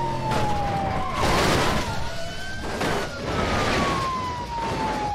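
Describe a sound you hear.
A car crashes with loud metallic bangs.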